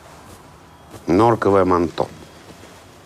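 A middle-aged man speaks briefly and calmly nearby.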